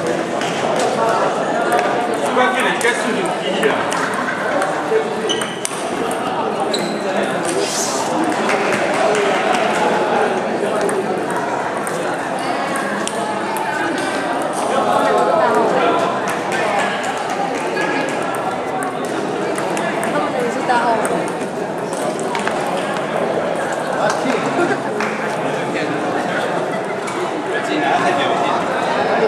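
A crowd of children and adults chatters in the background.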